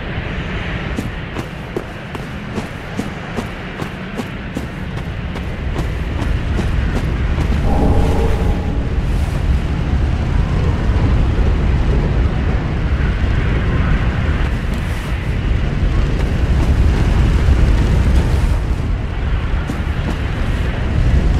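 Armoured footsteps clank and crunch on the ground.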